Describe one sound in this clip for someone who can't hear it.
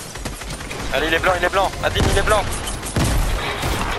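A rifle fires a burst of rapid shots.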